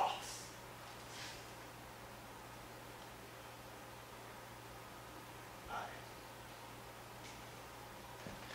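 An adult man speaks in short bursts in a quiet, echoing room.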